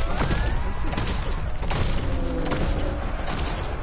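Fiery blasts roar and crackle loudly.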